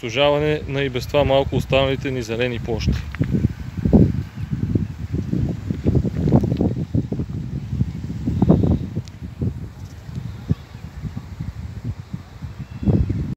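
Wind gusts and rumbles across open water.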